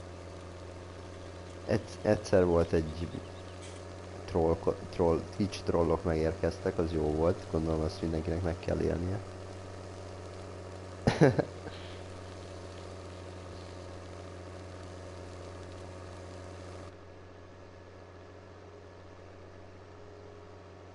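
A tractor engine hums steadily at a low pitch.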